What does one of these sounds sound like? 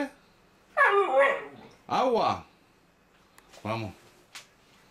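A dog howls in short, wavering calls.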